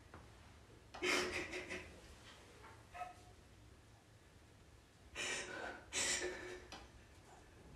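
A young woman sobs and cries softly close by.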